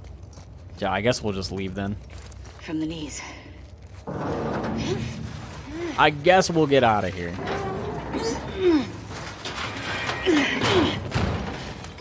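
A young woman grunts and strains with effort.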